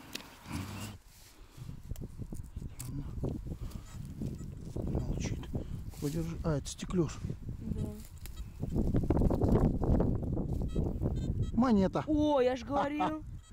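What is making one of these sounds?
A trowel scrapes and crunches through soil.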